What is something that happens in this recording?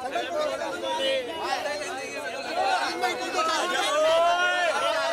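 A crowd of young men talk and shout excitedly close by.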